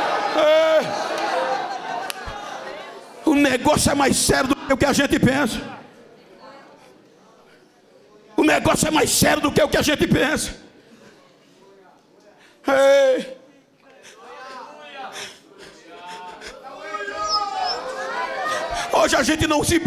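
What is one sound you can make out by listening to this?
An elderly man preaches forcefully through a microphone in a large echoing hall.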